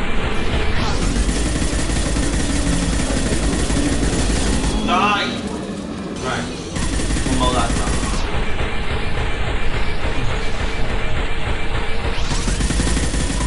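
Rapid gunfire and energy blasts crackle loudly.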